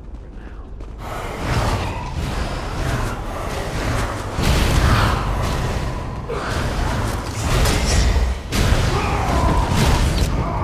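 Magic spells crackle and hum in bursts.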